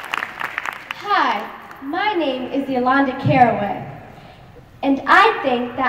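A young girl sings through a microphone in a large echoing hall.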